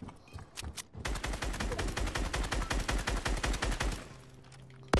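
Wooden walls snap into place in rapid clattering bursts.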